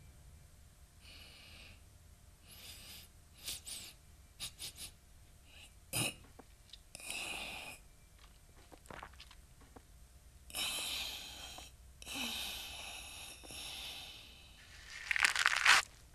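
A young man talks into a close microphone in short bursts.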